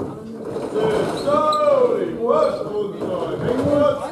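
A bowling ball rumbles down a wooden lane.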